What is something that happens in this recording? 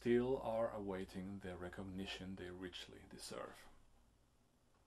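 A middle-aged man speaks calmly and clearly, close to a microphone.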